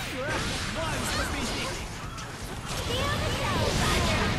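Punches and fiery blasts crash in a fast fight.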